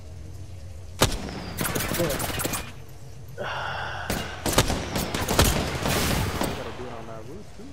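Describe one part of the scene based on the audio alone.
Gunfire rattles in rapid, loud bursts.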